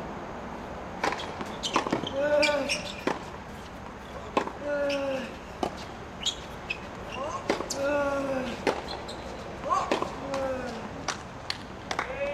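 A tennis racket hits a ball with sharp pops.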